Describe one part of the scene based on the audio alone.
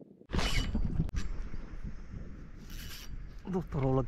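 A fishing line whizzes out as a rod casts.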